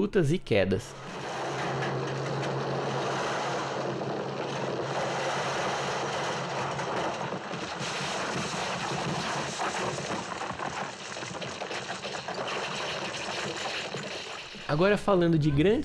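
Rocks and gravel rumble and slide down a slope.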